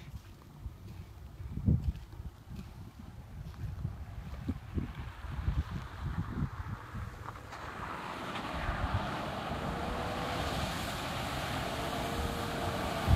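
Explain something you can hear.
Wind buffets outdoors with low rumbling gusts.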